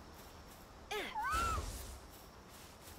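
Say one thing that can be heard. A small creature gives a short rising squeak.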